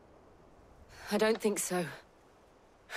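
A young woman answers briefly and quietly.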